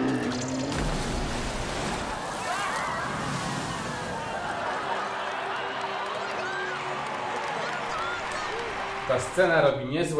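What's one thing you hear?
A crowd cheers and shouts excitedly.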